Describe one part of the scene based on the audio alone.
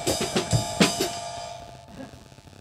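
An electric piano plays chords that ring out and fade.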